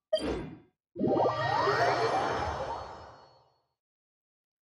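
A shimmering whoosh swells and slowly fades.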